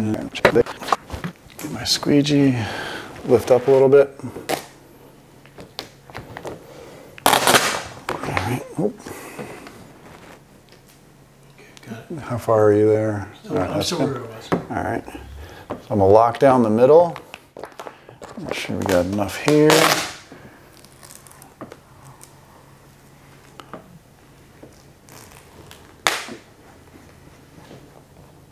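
Plastic film crinkles as it is handled.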